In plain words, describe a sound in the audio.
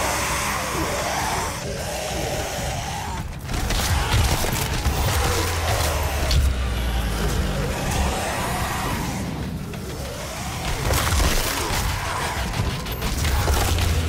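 Monsters snarl and roar.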